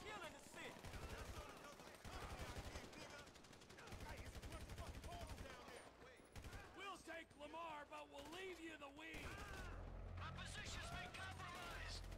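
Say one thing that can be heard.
Rapid gunfire rings out in bursts.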